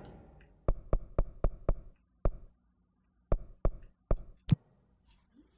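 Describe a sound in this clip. A game menu gives short sharp clicks as the selection moves.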